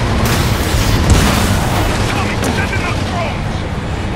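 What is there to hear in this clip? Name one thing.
A heavy truck engine roars close by.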